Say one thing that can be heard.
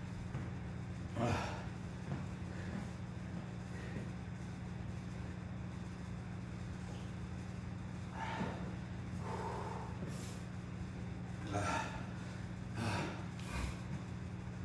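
A man's footsteps shuffle on a hard floor.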